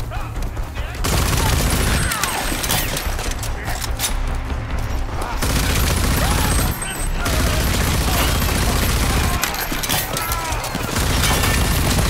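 A rifle fires in rapid bursts with loud, booming shots.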